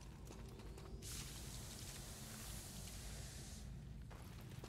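An energy blast hisses and crackles.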